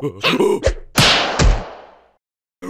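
A cartoon creature yelps and tumbles with a thud.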